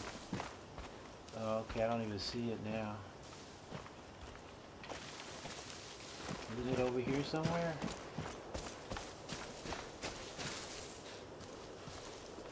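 Footsteps crunch through grass at a steady walking pace.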